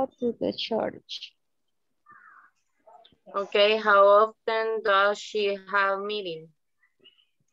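A woman speaks slowly and clearly over an online call.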